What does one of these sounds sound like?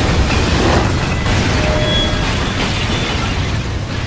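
Rocks and debris crash and rumble loudly.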